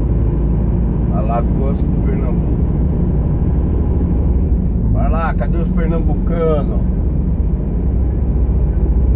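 A heavy diesel truck engine drones while cruising, heard from inside the cab.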